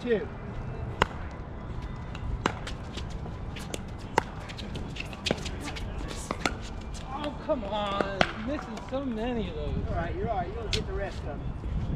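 Paddles pop sharply against a plastic ball.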